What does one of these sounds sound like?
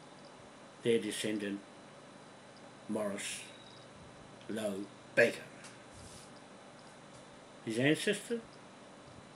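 An older man speaks calmly in short phrases with pauses, close by.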